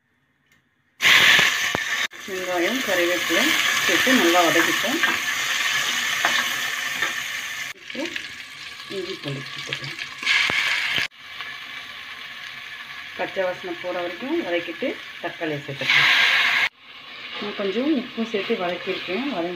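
Onions sizzle loudly in hot oil.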